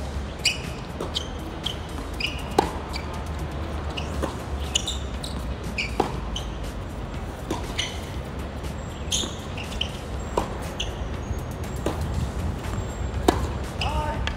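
A tennis ball is struck back and forth with rackets in a steady rally.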